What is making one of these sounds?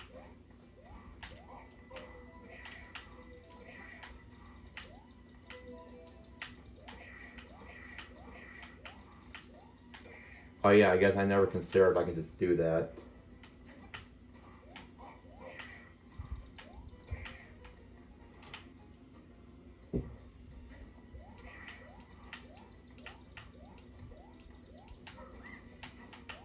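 A video game's music plays through a television speaker.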